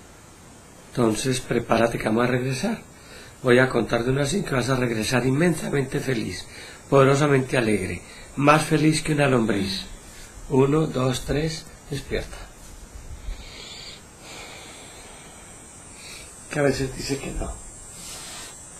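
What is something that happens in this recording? A middle-aged man speaks calmly and softly nearby, in short phrases.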